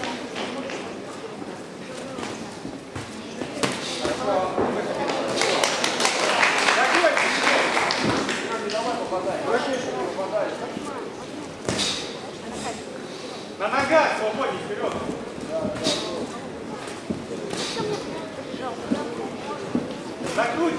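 A crowd of spectators shouts and cheers in a large echoing hall.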